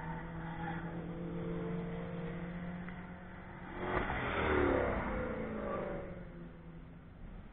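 A car engine roars as a car speeds past close by and fades away.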